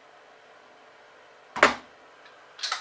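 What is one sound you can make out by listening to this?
A metal pot lid clanks as it is lifted off.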